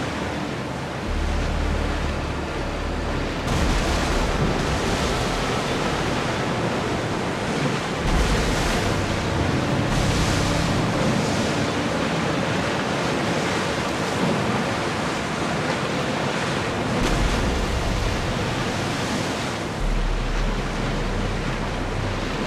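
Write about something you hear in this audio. Wind blows steadily over open sea.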